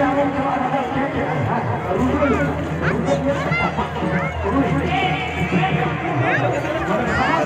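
A dense crowd of men and women chatters loudly all around, outdoors.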